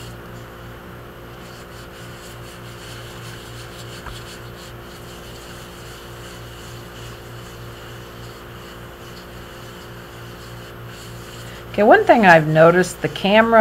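Gloved fingers rub softly over a smooth ceramic piece.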